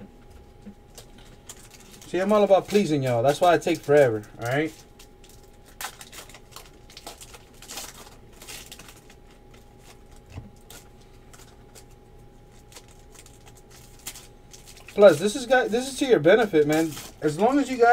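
Foil card packs crinkle and rustle as hands tear them open.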